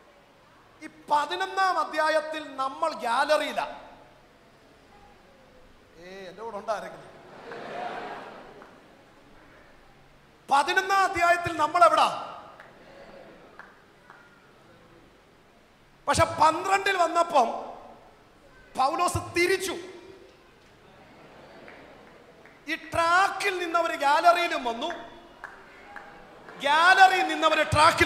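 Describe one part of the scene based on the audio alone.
A man preaches with animation into a microphone, heard over loudspeakers.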